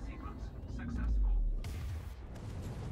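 An explosion booms with a deep blast.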